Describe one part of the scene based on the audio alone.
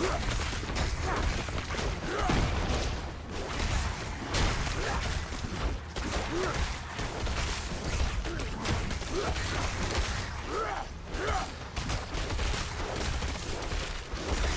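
Spells burst and crackle with dull booms.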